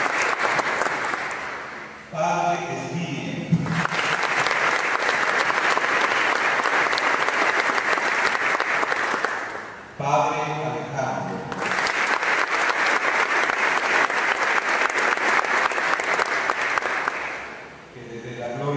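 A large crowd of men recites a prayer aloud in unison in an echoing hall.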